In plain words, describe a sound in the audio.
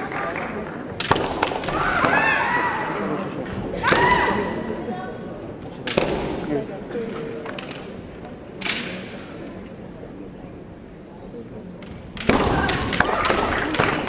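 Bamboo swords clack sharply against each other and armour.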